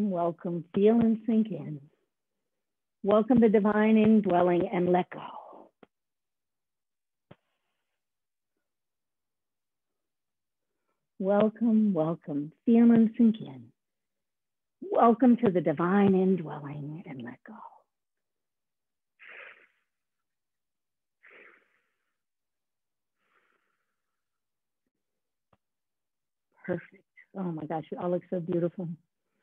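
A woman gives instructions calmly through an online call, in bursts with pauses.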